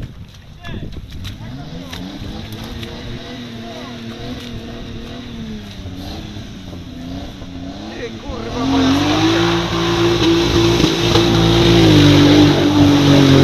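An off-road vehicle's engine revs hard as it churns through deep mud.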